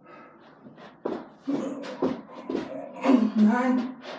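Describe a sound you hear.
Shoes thump and scuff on a carpeted floor as a man jumps and drops down.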